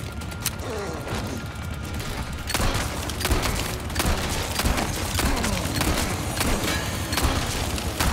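A chainsaw engine revs and roars.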